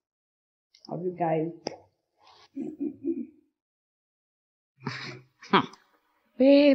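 A young woman speaks with animation, close by.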